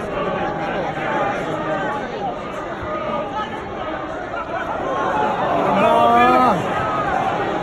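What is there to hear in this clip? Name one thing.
A crowd of spectators chants and sings loudly in a large open stadium.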